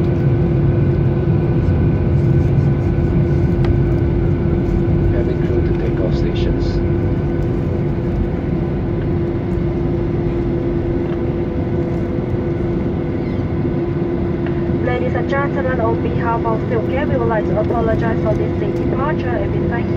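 Jet engines hum loudly and steadily from inside an aircraft cabin.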